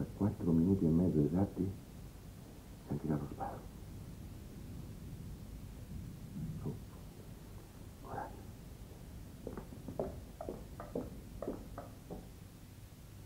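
A middle-aged man speaks quietly and intently, close by.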